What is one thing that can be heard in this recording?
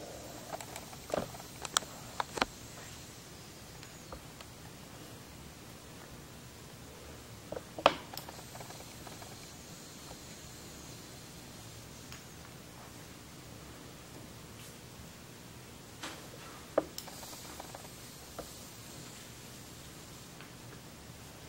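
A man draws on a vape with soft sucking sounds.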